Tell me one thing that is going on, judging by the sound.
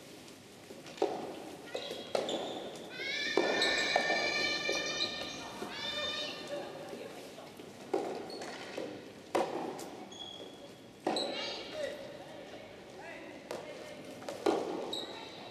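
Rackets strike a ball with sharp pops in a large echoing hall.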